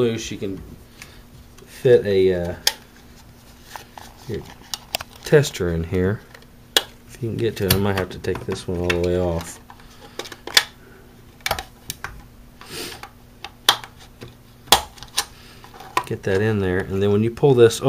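Small plastic parts click and rattle as they are fitted together by hand.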